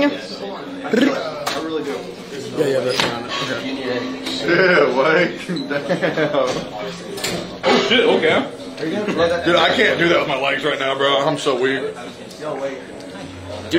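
A young man speaks close up, with excitement.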